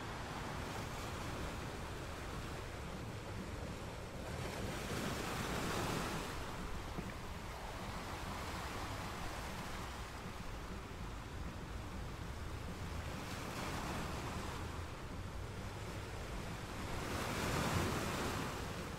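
Water rushes and churns over rocks close by.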